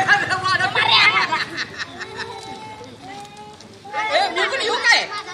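Children shout and chatter excitedly close by.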